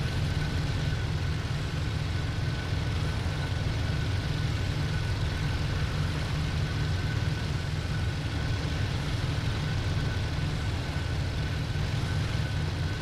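A propeller aircraft engine drones steadily with a deep rumble.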